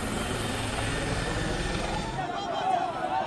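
A helicopter's rotor thumps and its engine roars overhead.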